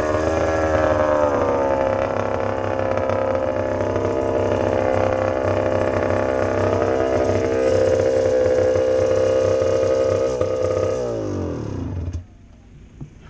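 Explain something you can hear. A motorcycle engine runs steadily close by, then winds down and cuts out.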